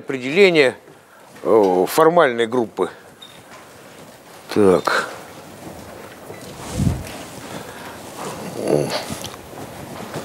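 A man speaks with animation in a large echoing hall.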